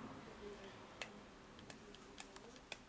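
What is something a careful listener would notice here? A small blade clicks and snips through paper.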